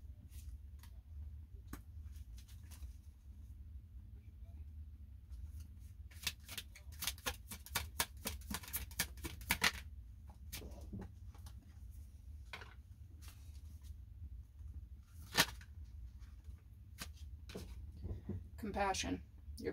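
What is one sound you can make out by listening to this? Playing cards shuffle and flick together, close by.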